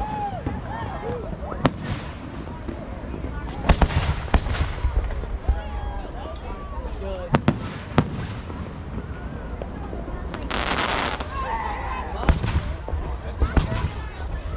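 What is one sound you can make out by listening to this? Rockets hiss and whistle as they shoot upward.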